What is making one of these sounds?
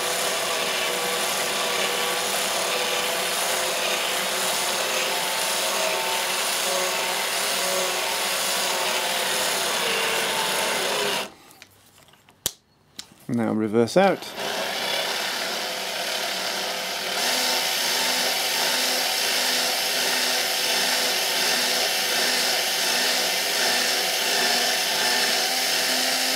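A drill motor whirs steadily as a tap cuts threads.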